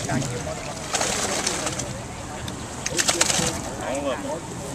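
Water splashes in a plastic basket.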